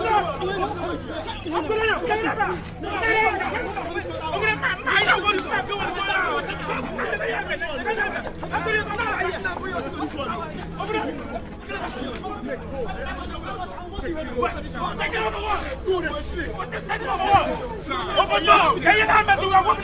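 A man shouts excitedly close by, outdoors.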